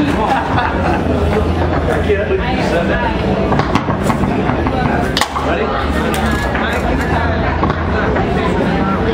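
Foosball rods rattle and clatter sharply.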